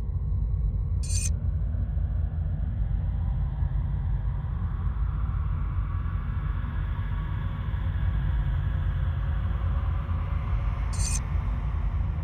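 A paper page flips over with a soft rustle.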